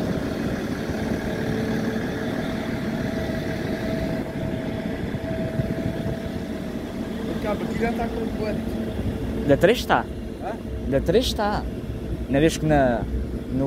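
An electric train hums while standing at a platform.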